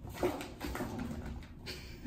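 A kitten scrambles over a cardboard scratcher.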